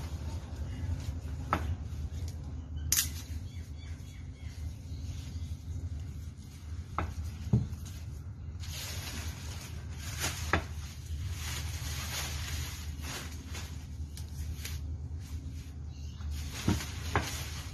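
Leafy branches rustle and swish as they are handled.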